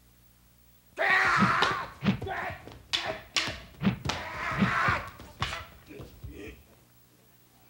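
Wooden practice swords clack together sharply.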